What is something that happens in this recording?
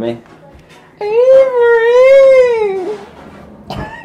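A young child sings in a high voice close by.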